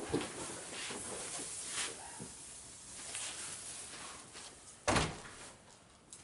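Cloth rustles and brushes close by.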